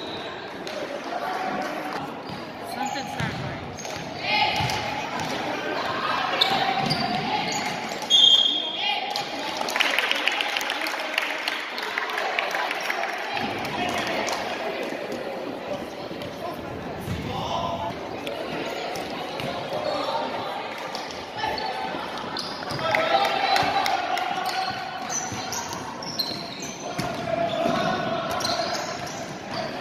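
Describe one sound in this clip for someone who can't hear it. A crowd chatters in the stands.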